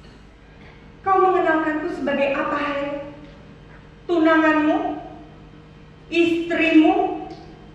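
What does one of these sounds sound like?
A young woman sings with feeling in long held phrases, in a reverberant hall.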